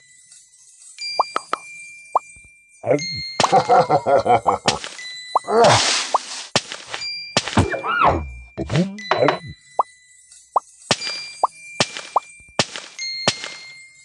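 A small bird chirps in short, high bursts.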